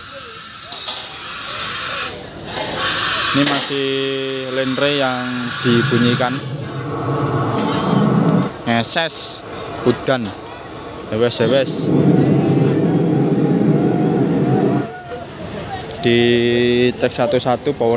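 Loud music blares from large loudspeakers outdoors.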